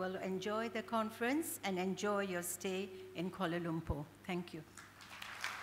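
An elderly woman speaks slowly and emotionally into a microphone in a large hall.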